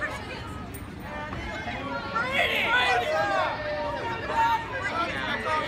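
A crowd of young people cheers and shouts outdoors.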